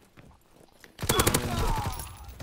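A submachine gun fires a rapid, loud burst.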